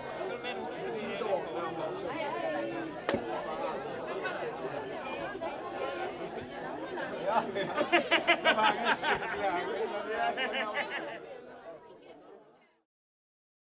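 A crowd of men and women chatters loudly close by, outdoors.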